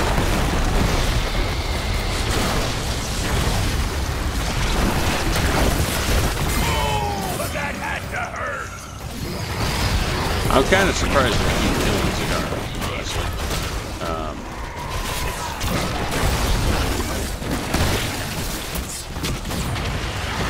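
Game battle effects clash and blast steadily.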